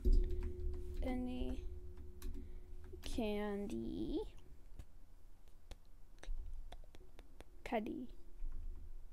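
A boy speaks briefly and casually, close to a microphone.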